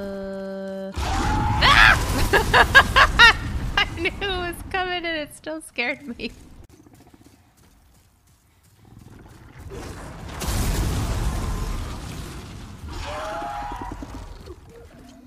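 A young woman talks and laughs with animation close to a microphone.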